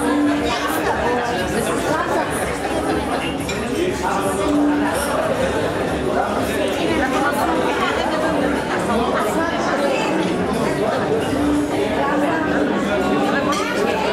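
A young boy speaks into a microphone, heard through loudspeakers.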